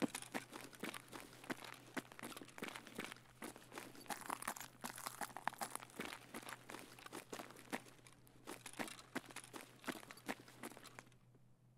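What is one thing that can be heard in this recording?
Footsteps thud steadily on hard floors and stairs.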